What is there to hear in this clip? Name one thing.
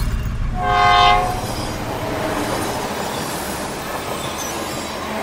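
A locomotive rumbles along the rails.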